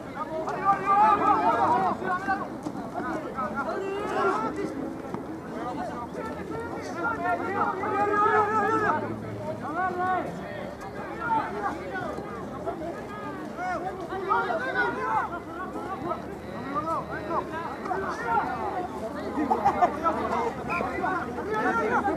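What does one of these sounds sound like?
Several young men shout and call out to each other outdoors.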